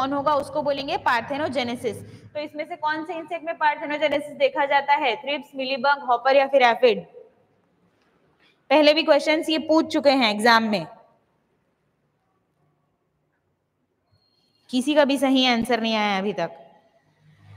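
A young woman speaks calmly and clearly into a close microphone, pausing between phrases.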